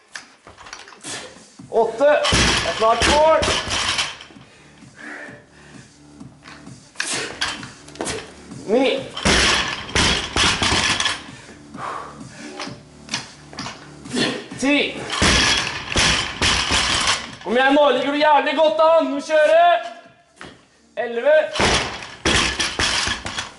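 A loaded barbell is dropped and crashes onto a rubber floor.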